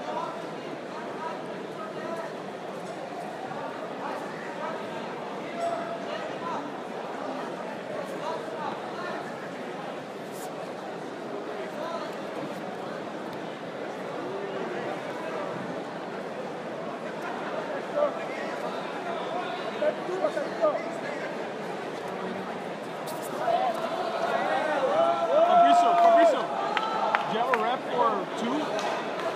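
Spectators talk in a large echoing hall.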